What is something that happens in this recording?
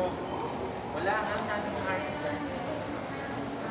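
A woman speaks close by, muffled, in a calm voice.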